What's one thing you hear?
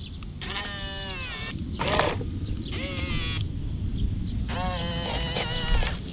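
A toy excavator's bucket scrapes into loose sand.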